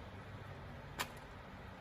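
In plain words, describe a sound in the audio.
A knife blade taps sharply once.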